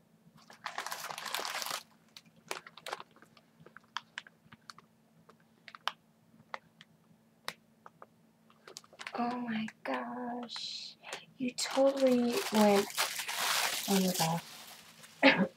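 Tissue paper rustles and crumples as it is handled.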